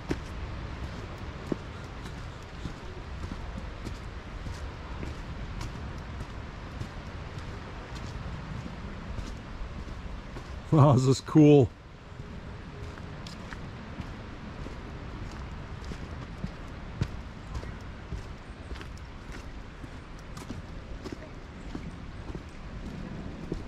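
Footsteps crunch steadily on a stone and dirt path.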